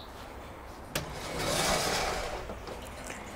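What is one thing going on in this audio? A greenhouse door slides open with a click and a rattle.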